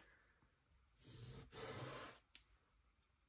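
A paper tissue rubs and wipes over card.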